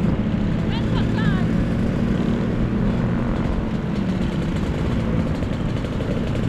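Scooter engines buzz and putter steadily close by.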